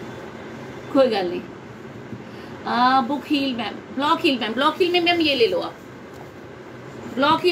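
A woman speaks close to a microphone with animation.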